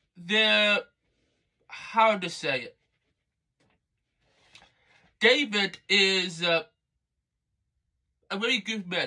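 A young man speaks close up in short, lively bursts with pauses.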